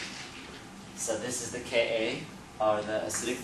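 A man speaks calmly, as if lecturing.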